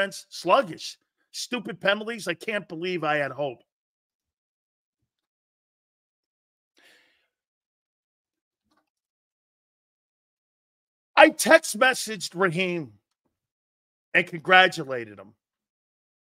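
A middle-aged man speaks with animation into a close microphone, pausing between outbursts.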